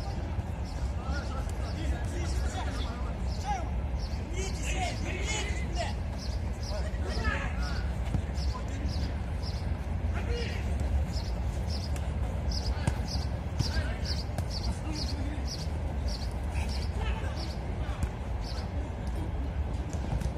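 A football thuds when kicked.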